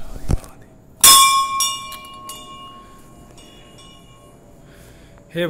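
A temple bell rings once and slowly fades.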